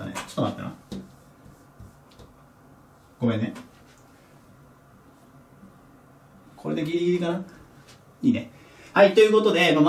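A young man talks calmly and explains, close by.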